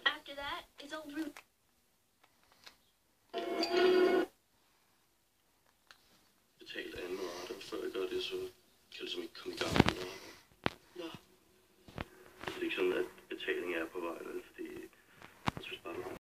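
Voices speak calmly through a small television loudspeaker.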